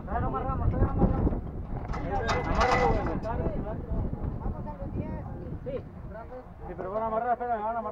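A man talks loudly nearby.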